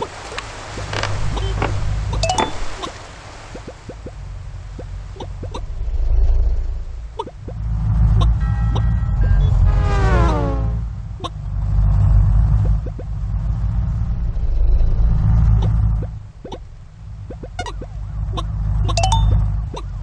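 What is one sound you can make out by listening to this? Game cars and trucks whoosh past in traffic.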